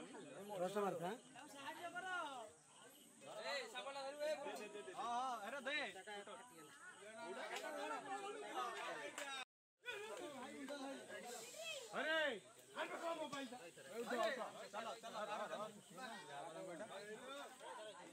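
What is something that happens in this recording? Several men talk and shout excitedly close by.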